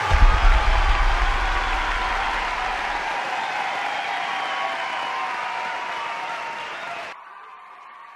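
Rock music with drums and cymbals plays loudly, then stops abruptly.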